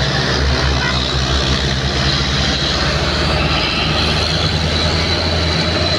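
A minibus passes by quickly.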